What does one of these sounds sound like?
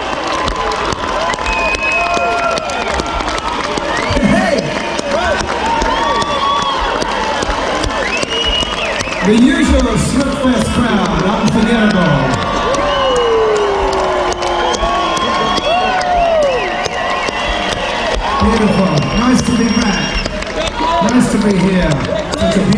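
A crowd cheers and sings along close by.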